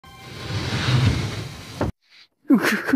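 A sliding door rumbles open.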